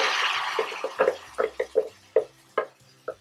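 A wooden spoon scrapes and taps against a metal pan.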